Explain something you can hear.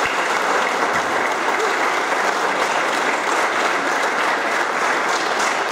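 A large choir of young voices sings together in a hall.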